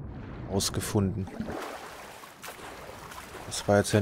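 Water splashes as a swimmer climbs out.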